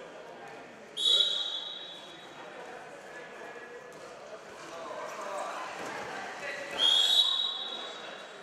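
A referee blows a sharp whistle in a large echoing hall.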